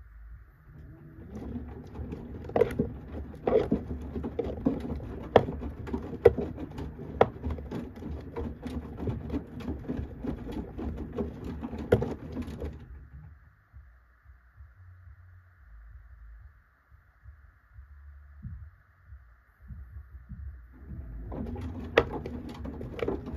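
A washing machine drum tumbles wet laundry with sloshing water and soft thuds.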